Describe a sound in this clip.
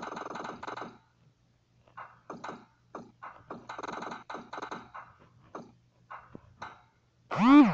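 A plastic puck clacks against paddles in quick hits.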